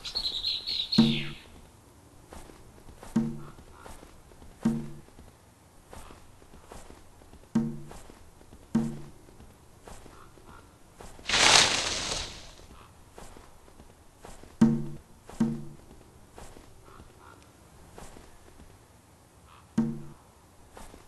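A short low electronic tone plays again and again as menu buttons are pressed.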